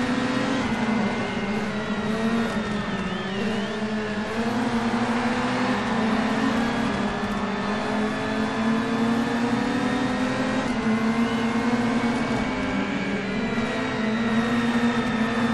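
A racing car engine roars at high revs, shifting gears as it speeds up.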